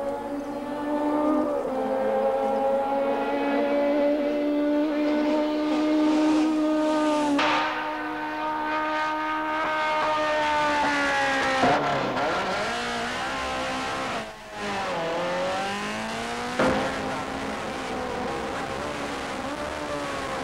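A racing car engine roars at high revs as the car speeds along the road.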